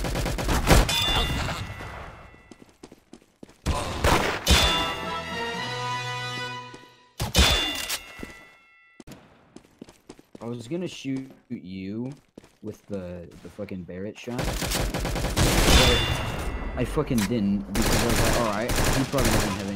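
Gunshots fire in sharp, loud bursts.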